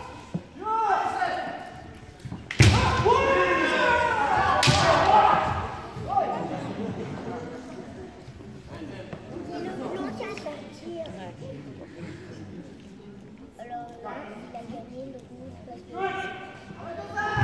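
Fencers shout loudly in a large echoing hall.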